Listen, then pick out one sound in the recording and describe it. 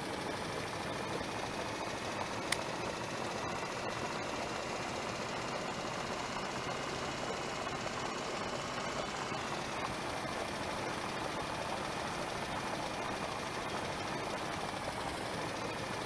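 A bus engine drones steadily as it drives along a bumpy dirt road.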